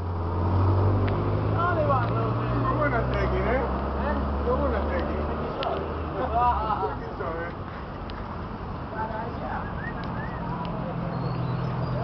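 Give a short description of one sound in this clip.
Men and women chatter nearby outdoors.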